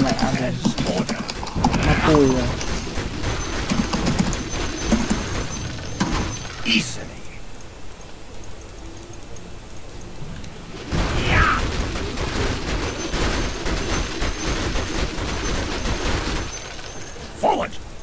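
Game spell effects and hits crackle and whoosh.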